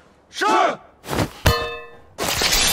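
A sword swishes and rings through the air.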